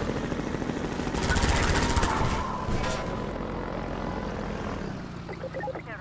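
A vehicle engine roars and rumbles as it drives over rough ground.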